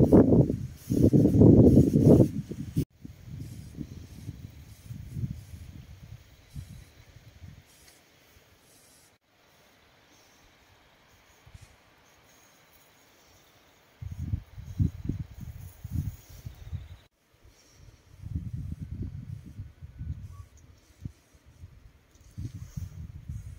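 Wind gusts and rumbles outdoors.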